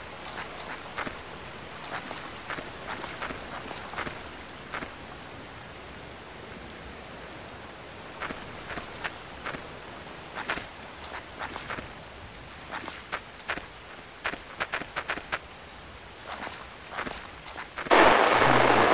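Footsteps crunch slowly on a dirt path.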